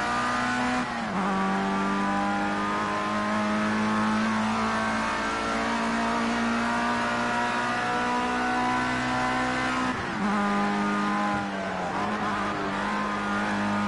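A racing car engine roars at high revs, shifting gears with sudden drops in pitch.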